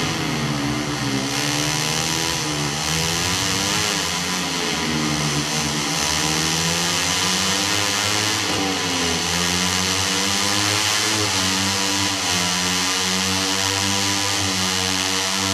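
A racing motorcycle engine revs high and whines, shifting through gears as it speeds up.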